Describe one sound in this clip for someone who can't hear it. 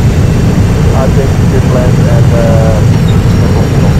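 Tyres screech briefly on a runway.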